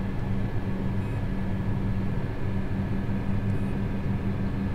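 A touchscreen gives short electronic beeps.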